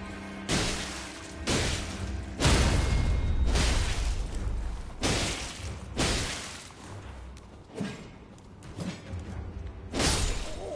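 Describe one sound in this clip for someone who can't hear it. Heavy sword blows strike and slash with loud, sudden impacts.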